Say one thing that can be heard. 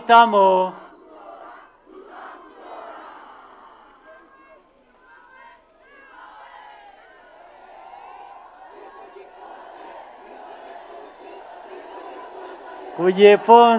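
A large crowd cheers and murmurs.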